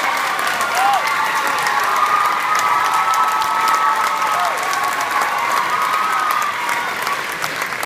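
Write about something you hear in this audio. A school band plays music in a large echoing hall.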